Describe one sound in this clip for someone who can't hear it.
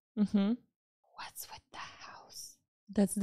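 A second young woman talks calmly into a close microphone.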